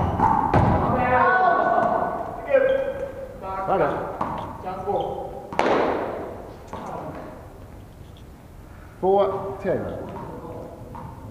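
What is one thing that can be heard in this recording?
Young men shout short calls to each other in an echoing hall.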